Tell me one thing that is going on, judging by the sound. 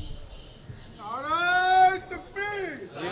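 A man chants in a long, wailing voice over loudspeakers.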